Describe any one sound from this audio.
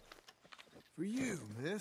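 A horse whinnies softly.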